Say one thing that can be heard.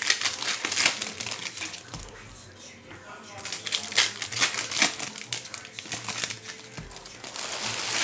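Trading cards rustle and flick as they are shuffled by hand.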